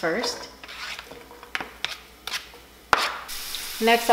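Chopped onions slide off a board and drop into a pan with soft knocks.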